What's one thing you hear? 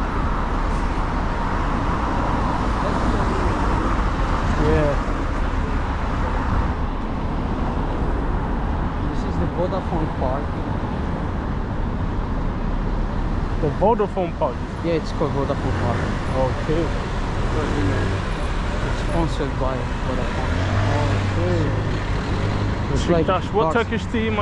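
Car engines hum as traffic passes steadily outdoors.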